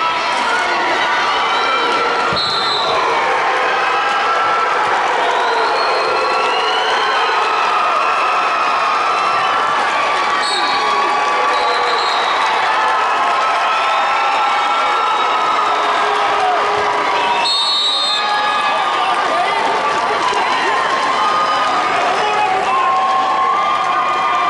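A large crowd murmurs and shouts in an echoing hall.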